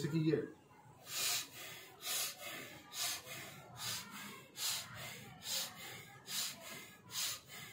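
A wooden club whooshes through the air in a steady rhythm.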